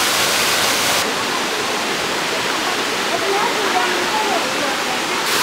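Water gurgles over rocks in a stream.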